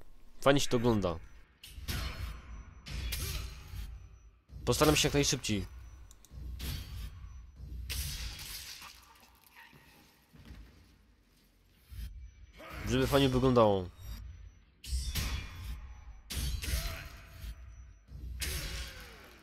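Swords clash and strike armour repeatedly.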